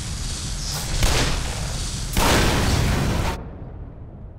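A gun fires loud shots that echo.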